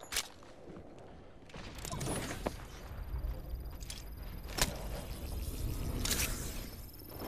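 Gunshots crack sharply a few times.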